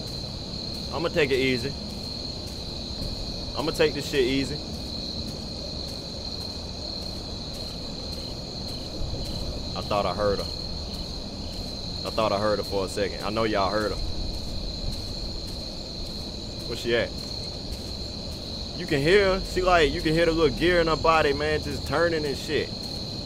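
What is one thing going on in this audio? A young man talks in bursts with animation, close to a microphone.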